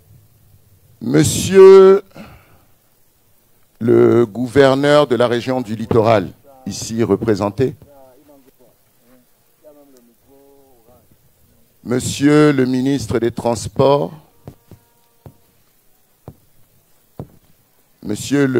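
A man speaks forcefully through a microphone in short bursts, outdoors.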